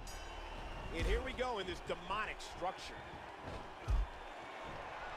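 Heavy thuds sound as wrestlers slam into each other.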